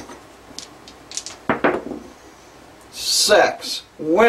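Dice tumble and bounce across a felt table.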